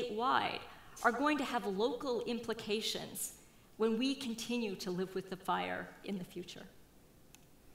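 A middle-aged woman speaks with animation through a microphone in a large hall.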